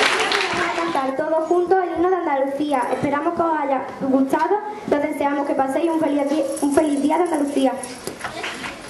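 A young girl reads out through a microphone.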